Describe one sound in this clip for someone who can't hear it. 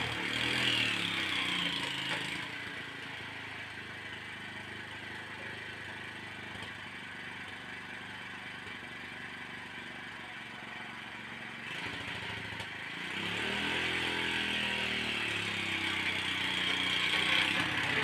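A small engine runs close by, revving louder at first, settling to a steady idle, then revving up again.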